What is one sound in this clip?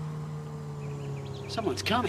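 A motorboat hums across the water.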